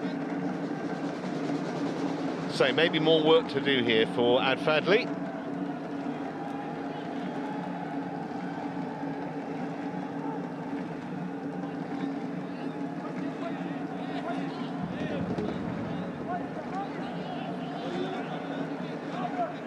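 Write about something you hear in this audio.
A stadium crowd murmurs steadily in a large open space.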